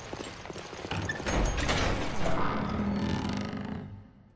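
A heavy door lock clanks and turns with a rumble.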